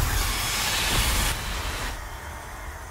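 A loud fiery blast roars and then fades away.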